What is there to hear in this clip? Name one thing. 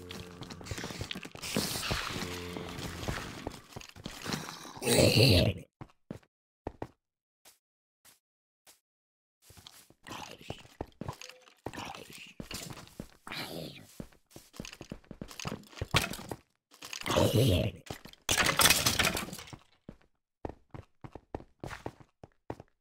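Quick thuds land as a sword strikes creatures over and over.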